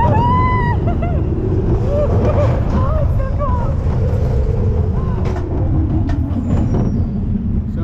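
A roller coaster rumbles and rattles along its track.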